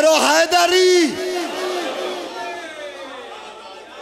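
A man chants in a raised, singing voice through loudspeakers.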